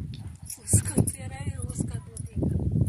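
A woman speaks briefly, close by.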